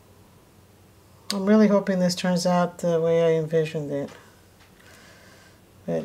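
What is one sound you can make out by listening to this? Liquid pours softly into a mold.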